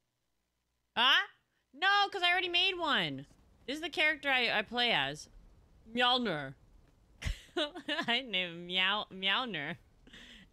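A young woman talks with animation into a microphone, close by.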